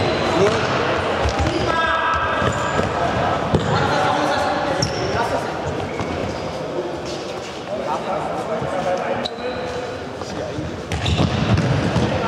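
A ball thuds as it is kicked on a hard floor.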